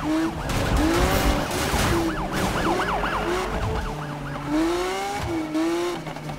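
Police sirens wail, rising and falling close by.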